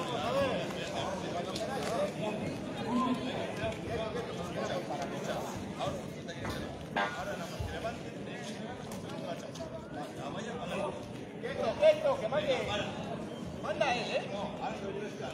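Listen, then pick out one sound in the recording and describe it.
A crowd of men shout and cheer outdoors.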